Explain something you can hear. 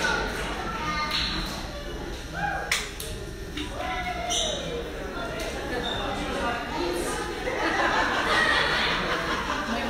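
A crowd of men and women murmurs and chatters in a large echoing hall.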